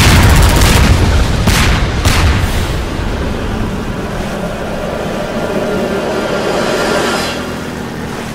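Water splashes and sprays loudly against the boat.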